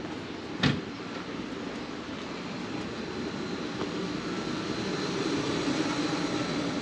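Street noise hums steadily outdoors.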